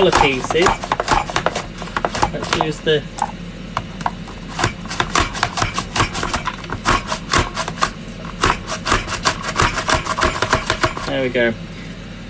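A plastic slicer chops carrots with rapid clacking strokes.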